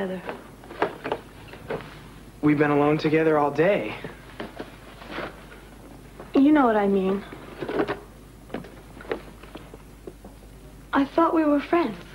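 Cardboard boxes scrape and thump as they are handled.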